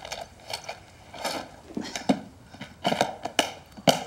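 Small objects rattle in a plastic box.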